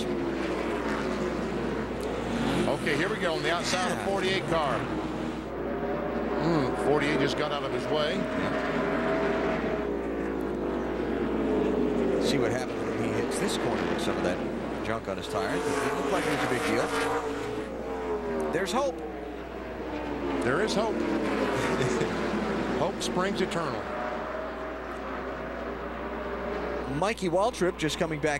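Race car engines roar loudly, revving up and down as the cars speed past.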